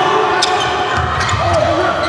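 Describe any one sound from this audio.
A volleyball is spiked hard at the net.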